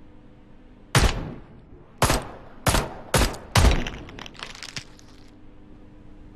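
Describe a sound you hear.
A revolver fires several loud shots that echo.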